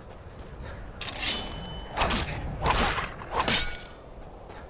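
A blade strikes an animal with sharp, heavy hits.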